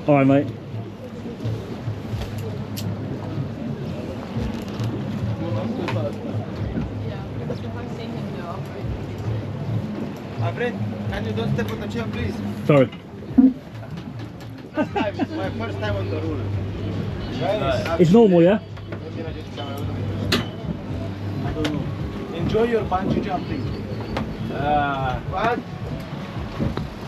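A boat engine hums low and steady.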